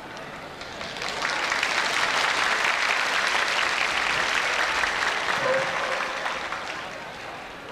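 A large crowd claps and cheers loudly.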